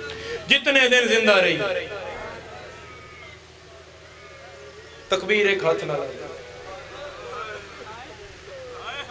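A young man chants loudly and with feeling through a microphone and loudspeakers, with echo.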